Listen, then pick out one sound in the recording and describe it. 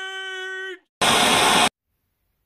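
A loud burst of static hisses briefly.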